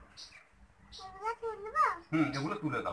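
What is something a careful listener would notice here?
A little girl talks in a high voice.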